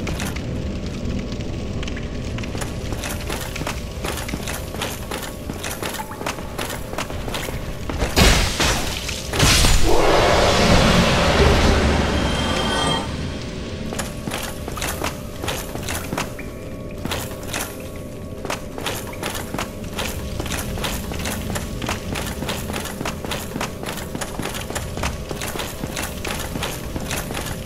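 Armoured footsteps run on stone.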